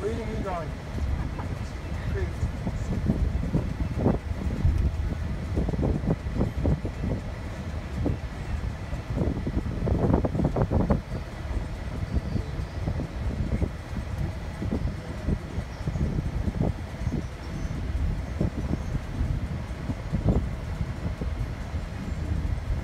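A car engine hums steadily, heard from inside the car.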